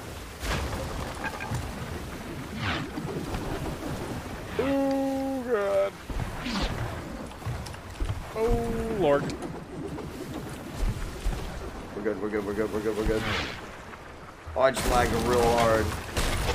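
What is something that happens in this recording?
Waves crash and churn around a sailing ship.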